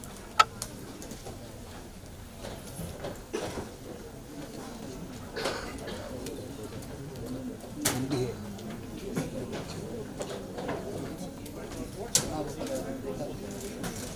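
A crowd of men and women chatters in the background.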